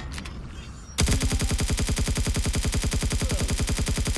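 An automatic gun fires in a rapid, steady burst.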